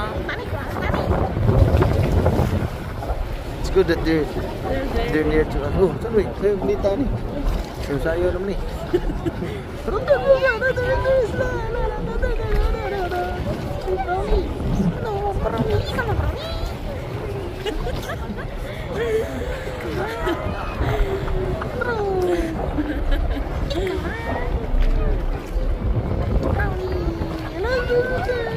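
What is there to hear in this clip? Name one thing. Sea water sloshes and splashes close by, outdoors in wind.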